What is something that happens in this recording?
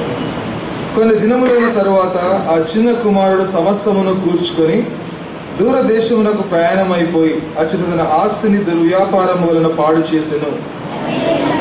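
A man reads aloud steadily through a microphone.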